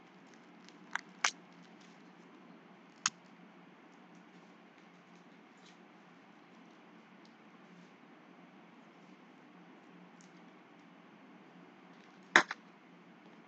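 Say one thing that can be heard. Cards in plastic sleeves click and tap as they are handled.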